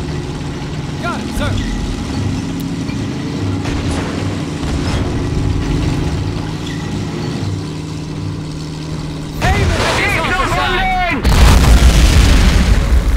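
Tank engines rumble and clank steadily.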